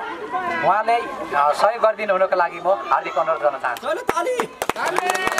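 A young man speaks loudly through a megaphone.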